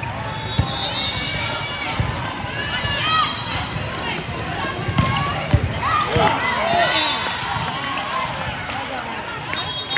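A crowd of young women and girls cheers and shouts in a large echoing hall.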